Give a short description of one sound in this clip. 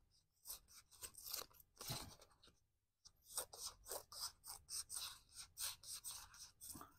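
Scissors snip repeatedly through thin material, close by.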